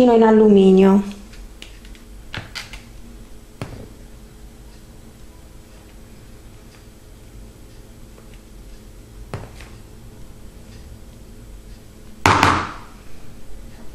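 A spoon scrapes and taps against thin foil cups.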